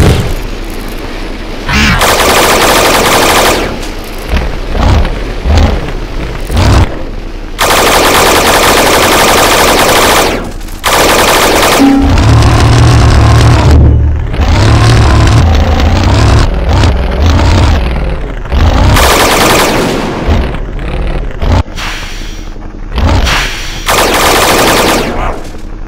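Fiery explosions boom in a video game.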